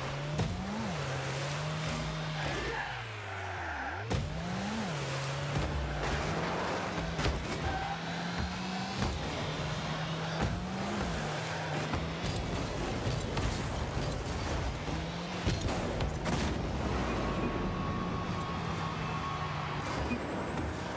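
A car engine hums steadily and revs up and down.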